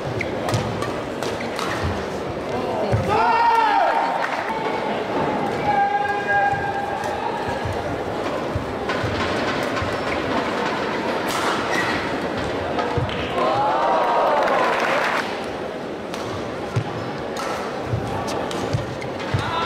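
Shuttlecock hits from rackets make sharp pops.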